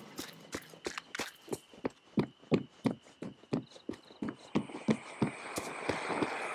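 Footsteps tap quickly on a hard path.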